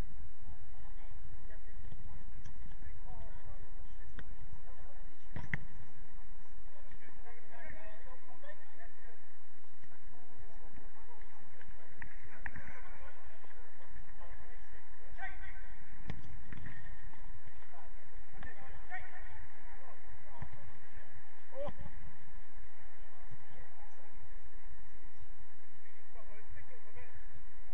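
Players shout and call out across an outdoor pitch, some distance away.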